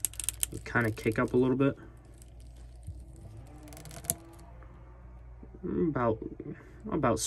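Plastic joints of a toy figure click softly as its limbs are bent.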